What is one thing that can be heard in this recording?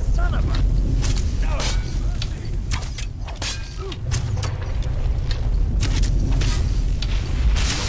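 A bowstring twangs as an arrow flies.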